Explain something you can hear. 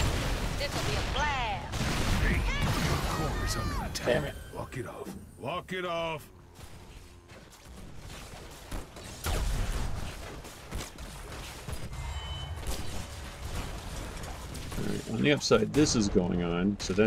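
Computer game battle effects zap, clash and boom.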